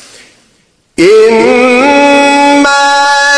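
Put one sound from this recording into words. A man chants in a loud, sustained voice through a microphone.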